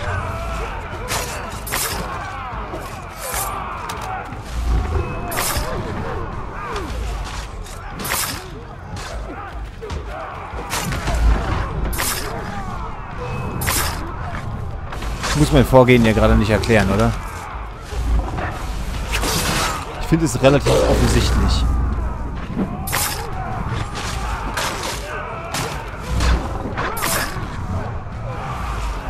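Blades clash and strike in quick, sharp blows.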